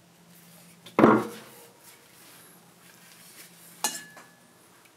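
A wooden piece knocks against a workbench.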